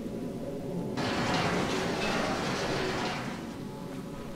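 A metal gate creaks as it is pushed open.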